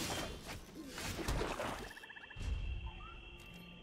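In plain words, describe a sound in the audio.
A card game's sound effect whooshes as a card is laid down.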